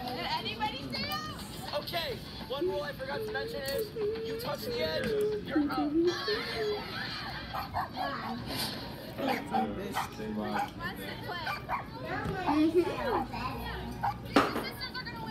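A girl talks with animation close to a microphone.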